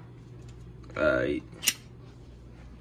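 A metal can lid is pulled open.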